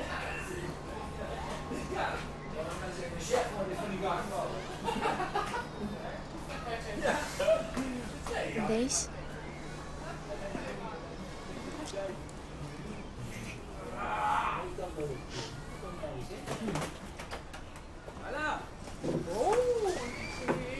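A young woman speaks softly close by.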